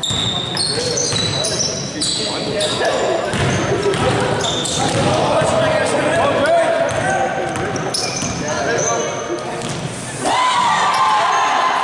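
A basketball bounces on the floor, echoing in a large hall.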